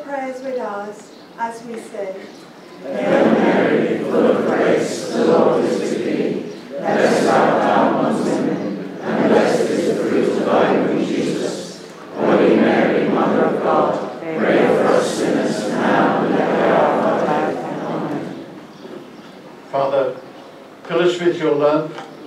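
A woman speaks calmly into a microphone, heard over a loudspeaker outdoors.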